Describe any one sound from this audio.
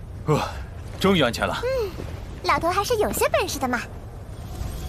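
A young woman speaks in a light, lively voice.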